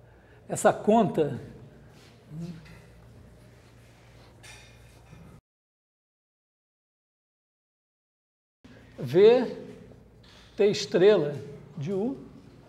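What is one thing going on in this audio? A man lectures nearby, speaking with animation.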